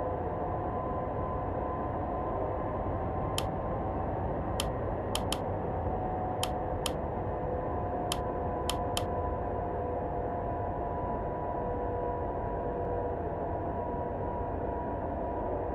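Jet engines drone steadily from inside a cockpit.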